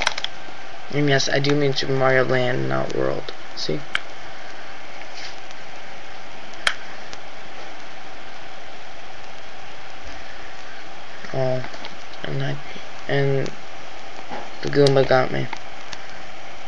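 Short bursts of beeping video game music play from a tiny speaker.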